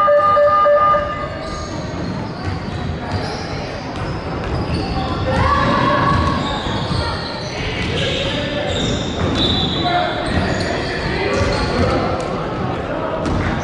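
A crowd of children and adults chatters and calls out in a large echoing hall.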